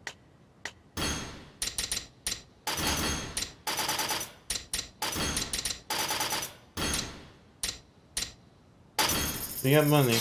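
Short electronic menu blips sound in quick succession.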